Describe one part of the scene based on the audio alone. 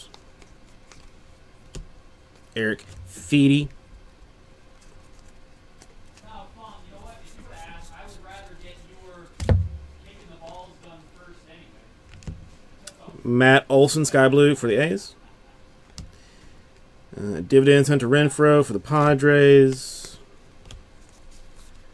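Trading cards rustle and flick as they are shuffled through by hand.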